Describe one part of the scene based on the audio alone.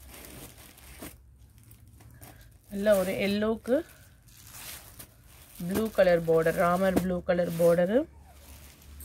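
Silk cloth rustles softly as hands fold and smooth it.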